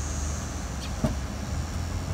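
A car's tailgate latch clicks open.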